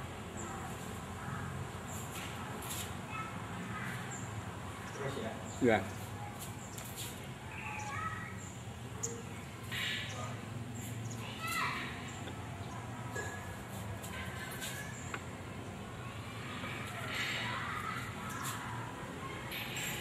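Bare feet shuffle and pad softly on a hard floor.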